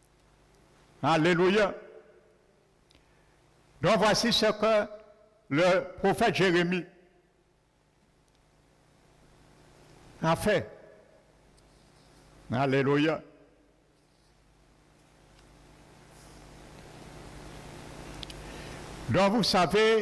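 A man preaches through a microphone in short bursts, with pauses between phrases, in an echoing hall.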